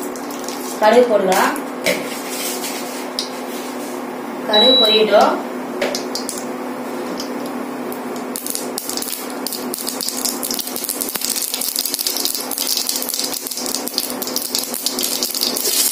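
Mustard seeds drop into hot oil and crackle.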